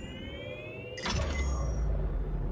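An electronic whoosh sweeps as a hologram closes.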